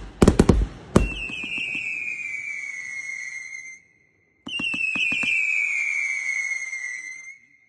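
Whistling fireworks shriek as they rise, falling in pitch.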